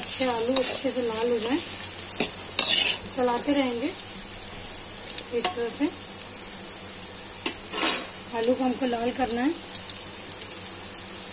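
Potatoes sizzle steadily in hot oil.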